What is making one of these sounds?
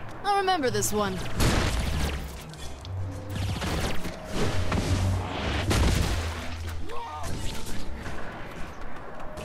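Punches and blasts thud and crack in a fight.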